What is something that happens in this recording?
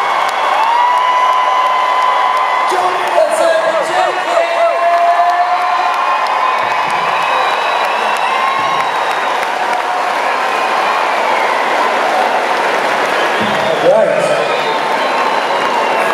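A band plays loudly through speakers, with electric guitars ringing.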